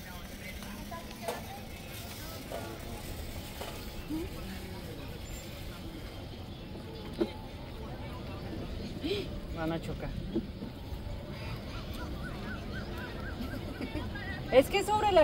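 A woman talks with animation over a phone call.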